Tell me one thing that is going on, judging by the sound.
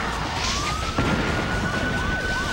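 A huge explosion roars.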